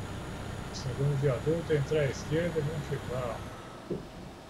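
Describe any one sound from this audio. A middle-aged man talks calmly into a headset microphone.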